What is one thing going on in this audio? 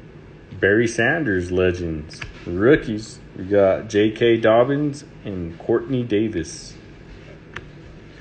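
Trading cards slide and flick against each other.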